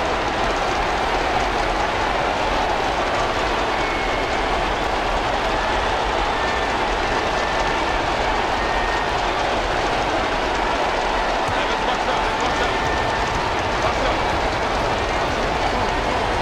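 A large arena crowd roars steadily.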